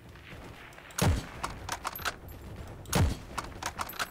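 A rifle fires sharp, loud shots.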